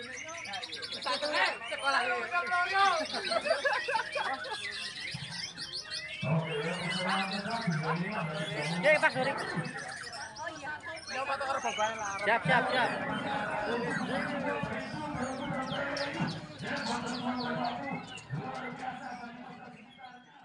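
Birds chirp and whistle in cages.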